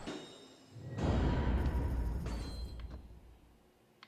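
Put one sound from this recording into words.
A loud bright chime and whoosh ring out.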